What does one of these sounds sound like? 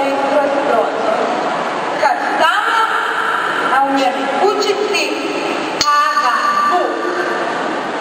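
A young woman reads aloud into a microphone.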